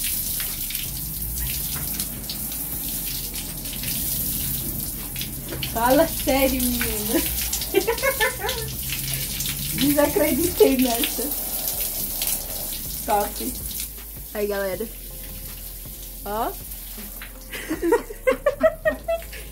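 Water from a shower pours and splashes steadily outdoors.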